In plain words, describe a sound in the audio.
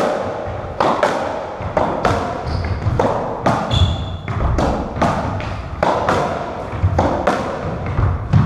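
Rackets strike a squash ball with loud cracks.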